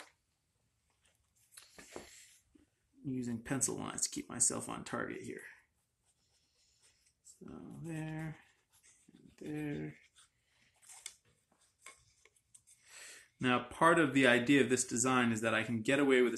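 A pencil scratches lightly on wood.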